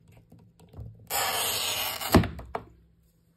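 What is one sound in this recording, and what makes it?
A tile cutter wheel scores across a tile with a gritty scraping.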